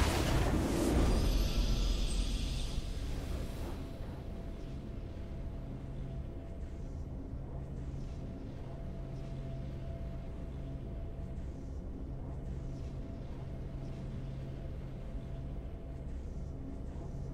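A triumphant game fanfare swells and rings out.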